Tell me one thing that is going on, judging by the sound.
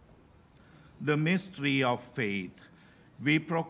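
A man speaks slowly and solemnly into a microphone, heard through a loudspeaker in a large echoing hall.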